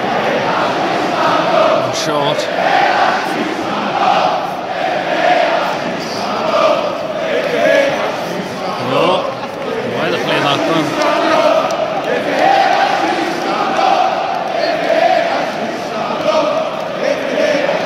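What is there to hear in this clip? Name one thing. A large football stadium crowd sings and chants.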